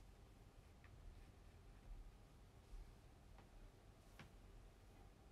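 Hair rustles softly between fingers close by.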